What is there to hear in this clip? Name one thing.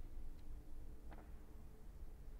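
A sheet of paper rustles as a page turns.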